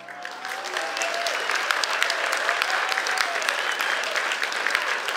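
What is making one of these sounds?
Acoustic guitars play a lively tune through stage loudspeakers.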